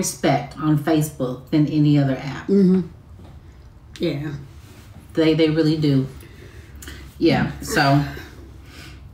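A woman speaks with animation close to a phone microphone.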